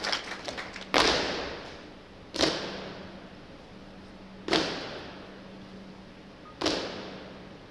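Boots stamp down together in a large echoing hall.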